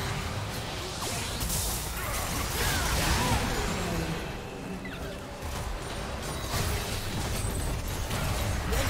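Game spells whoosh and blast in a busy fight.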